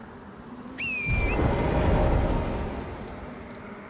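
A deep whoosh swells and fades.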